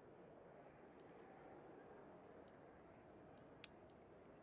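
Short, sharp interface clicks sound as a menu opens.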